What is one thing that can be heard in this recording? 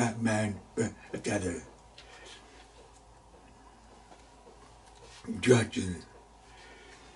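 An elderly man speaks calmly and close to a microphone, in short bursts.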